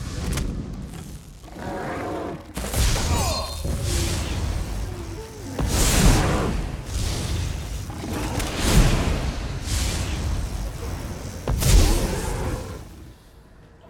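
A large creature roars and growls.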